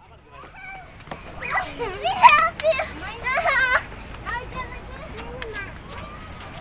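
Young girls shout and squeal excitedly nearby.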